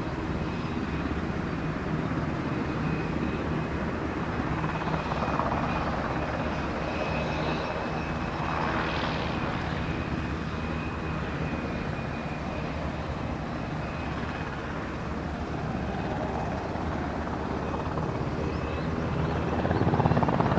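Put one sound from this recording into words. A twin-turboshaft MH-60S Seahawk helicopter taxis with a thudding rotor.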